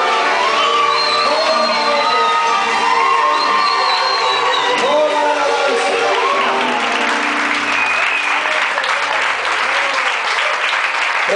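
A choir of young people sings in a large echoing hall.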